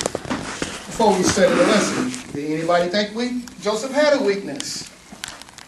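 A man speaks in a room that echoes slightly.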